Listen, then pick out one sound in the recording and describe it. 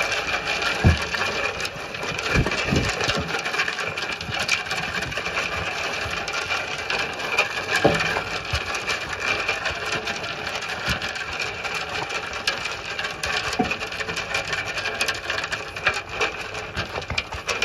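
Sheep nuzzle and knock against a metal trough.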